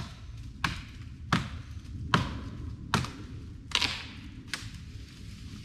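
Dry branches crack and snap sharply, a little way off, outdoors.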